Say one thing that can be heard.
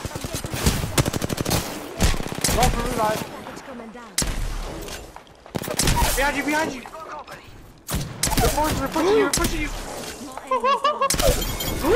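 Rapid gunfire bursts ring out in quick volleys.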